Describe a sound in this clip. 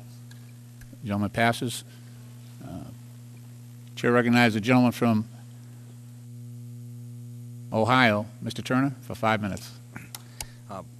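A middle-aged man speaks into a microphone in short bursts, with pauses between.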